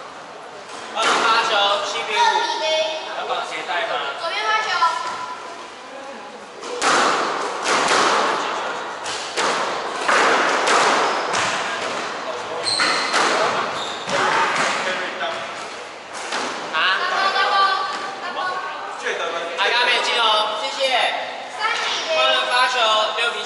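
Young men talk and call out to each other in an echoing room.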